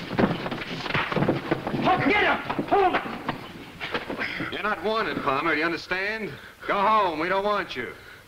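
Several young men shout and talk excitedly over each other.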